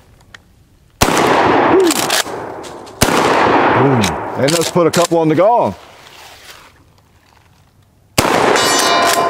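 A shotgun fires loud shots outdoors.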